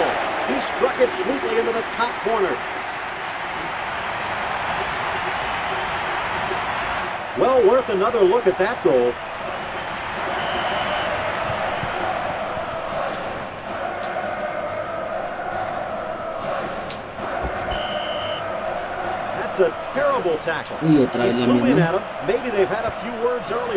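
A large stadium crowd roars and cheers steadily.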